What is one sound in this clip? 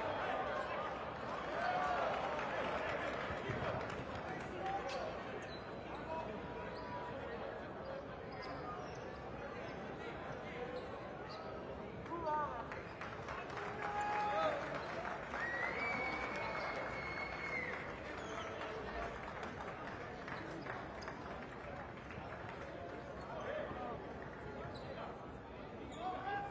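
A large indoor crowd murmurs and chatters in an echoing arena.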